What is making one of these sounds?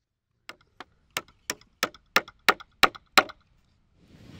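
A wooden mallet taps a peg into timber in quick knocks.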